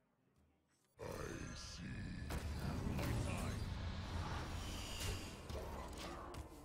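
A dark magic spell bursts with a rumbling whoosh.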